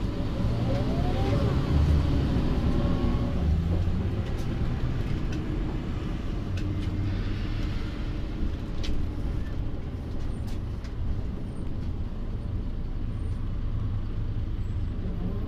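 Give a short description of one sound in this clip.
The bus rattles and clicks as it moves.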